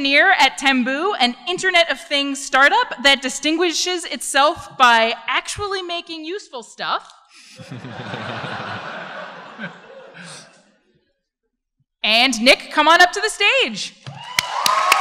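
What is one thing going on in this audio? A woman speaks through a microphone in a large hall, reading out.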